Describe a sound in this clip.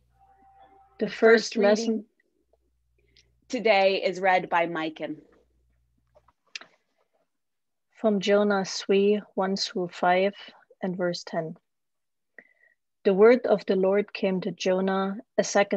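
A woman reads aloud calmly, heard through an online call.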